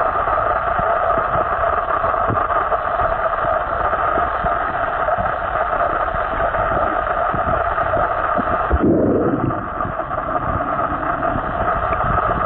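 Water rushes and rumbles steadily, heard from underwater.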